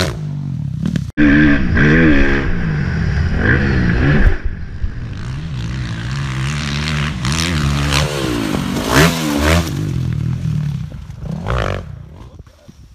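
A dirt bike engine revs loudly and changes pitch as it rides over jumps.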